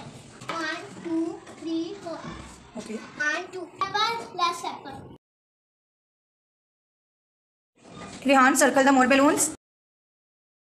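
A young child speaks loudly and clearly up close, in short bursts.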